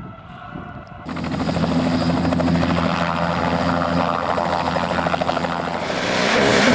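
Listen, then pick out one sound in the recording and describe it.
A helicopter's rotor thumps steadily as it lifts off.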